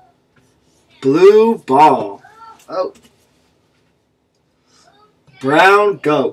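A young man speaks slowly and expressively close by, as if reading to a child.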